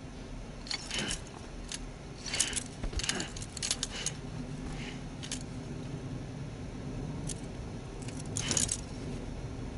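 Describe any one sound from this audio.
A hard plastic wrist cuff clicks and rattles.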